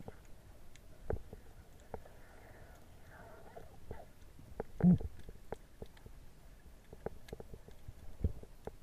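Faint clicks and dull knocks crackle underwater.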